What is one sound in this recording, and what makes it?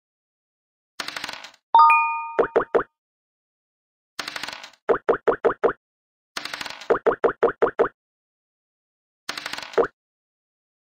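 A die rattles as it rolls.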